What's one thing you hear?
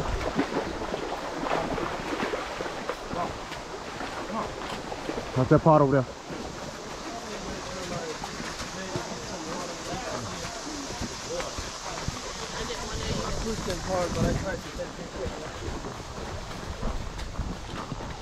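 Horses' hooves thud and splash on wet dirt and shallow water.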